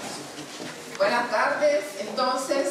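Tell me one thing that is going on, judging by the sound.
A woman speaks into a microphone.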